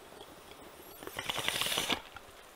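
Water bubbles and gurgles in a glass pipe close by.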